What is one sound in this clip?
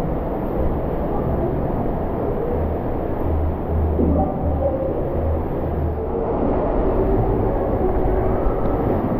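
Water rushes and splashes steadily in an echoing hall.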